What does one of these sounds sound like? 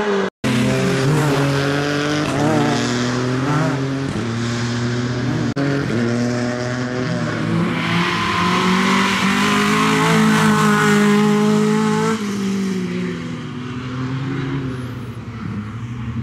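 A car engine revs hard as a car speeds past, shifting gears.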